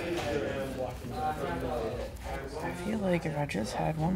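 A person shuffles a deck of playing cards.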